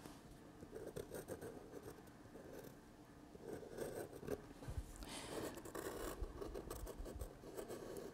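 A pencil scratches and scrapes on paper.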